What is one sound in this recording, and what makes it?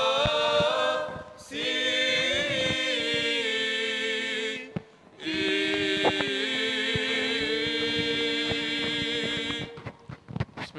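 A small choir of young men and women sings a slow, sustained chant into microphones.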